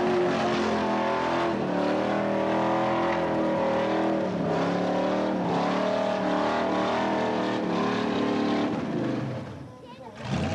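A car engine roars loudly at high revs.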